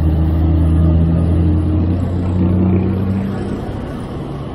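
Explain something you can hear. A large truck engine rumbles close by and fades.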